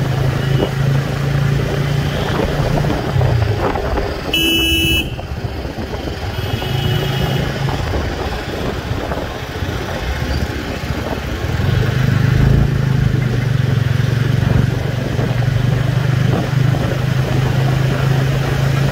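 An electric motor hums steadily as a scooter rides along a road.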